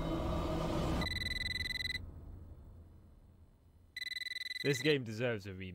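A telephone rings with a shrill electronic trill.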